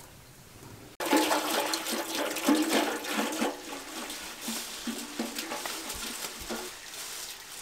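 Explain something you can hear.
Water pours and splashes into a metal pot.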